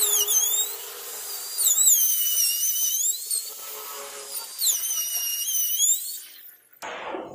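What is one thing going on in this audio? A power router whines loudly, its pitch rising and falling as it cuts wood.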